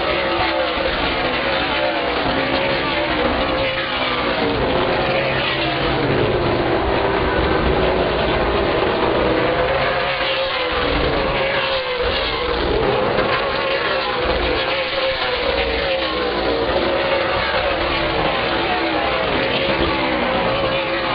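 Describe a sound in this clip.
Race car engines roar and whine as cars speed around a track nearby.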